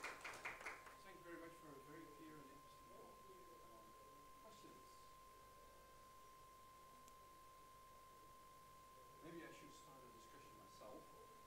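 A man speaks calmly at a distance in a large room.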